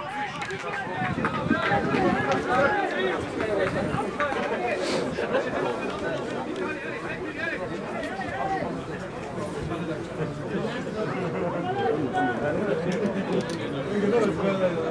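Young men shout and call to each other outdoors across an open field.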